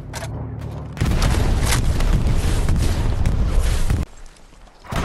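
An explosion roars and rumbles nearby.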